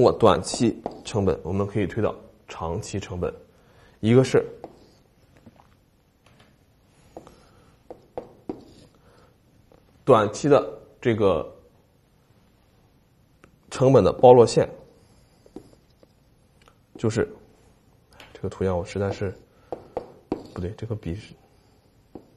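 A man lectures calmly into a close microphone, in short bursts with pauses.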